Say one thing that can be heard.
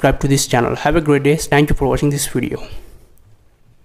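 An older man speaks calmly and clearly, close to a microphone.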